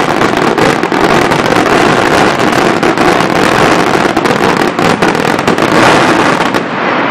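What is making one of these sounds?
Fireworks crackle and pop rapidly in the sky.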